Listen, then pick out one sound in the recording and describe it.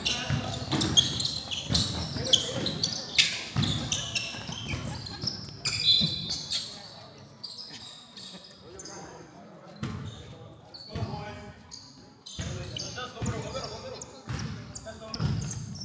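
Sneakers squeak sharply on a hardwood floor in a large echoing gym.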